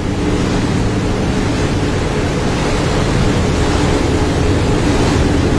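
Rushing water roars and churns loudly.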